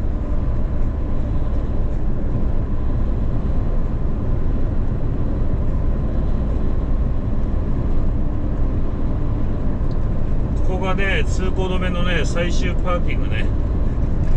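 Tyres roll over the road with a low, steady roar.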